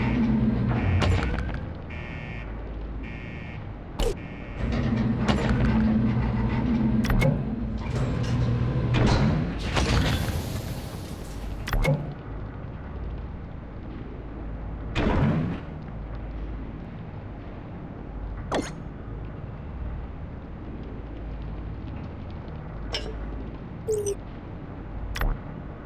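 Game menu clicks and chimes sound now and then.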